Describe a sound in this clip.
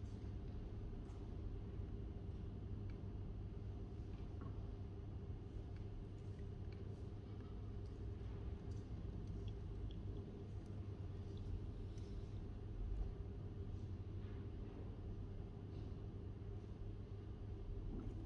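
Laptop keys click softly as someone types.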